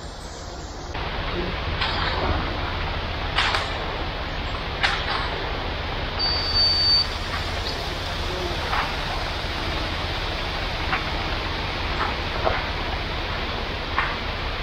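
A concrete truck's engine rumbles steadily outdoors.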